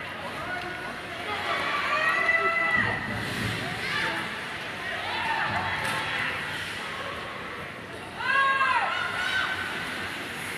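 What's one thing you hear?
Spectators shout and cheer nearby.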